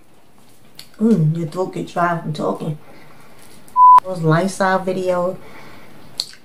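A young woman speaks calmly and close up.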